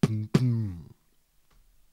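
A young man speaks briefly and calmly close to a microphone.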